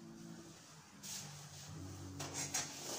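Footsteps thud lightly on a wooden floor.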